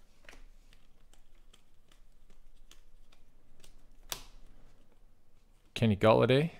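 Trading cards flick and slide against each other as they are sorted by hand.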